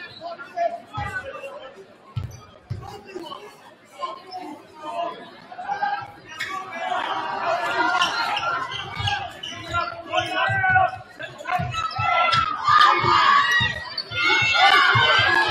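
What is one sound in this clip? Basketball bounces thump on a wooden court.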